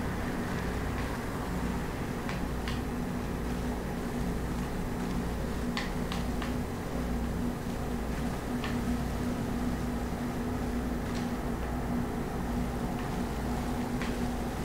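Quick light footsteps patter across the ground.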